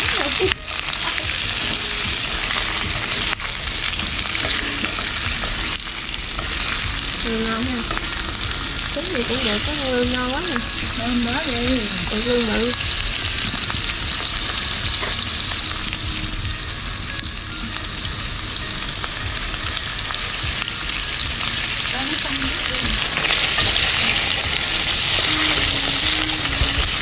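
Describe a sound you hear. Food sizzles and hisses steadily in a hot pan.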